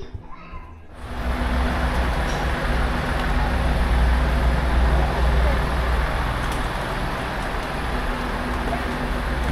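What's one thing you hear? Wind blows loudly across the microphone outdoors.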